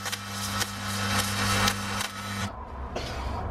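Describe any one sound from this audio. An electric welding arc crackles and hums steadily.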